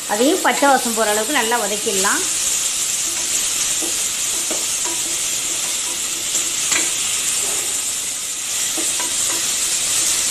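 A spoon scrapes and stirs inside a metal pot.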